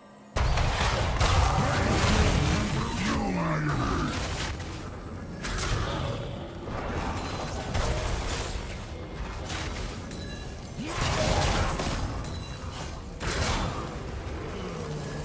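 Magic blasts whoosh and crash in quick bursts.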